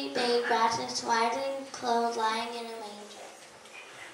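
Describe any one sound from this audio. Young girls sing together.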